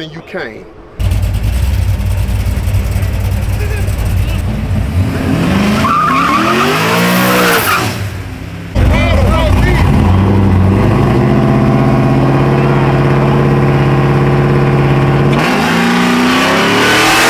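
A sports car engine idles with a deep rumble and revs.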